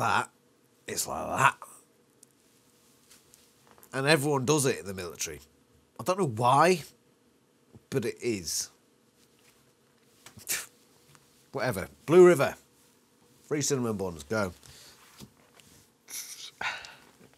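A man talks with animation close to a microphone, pausing between phrases.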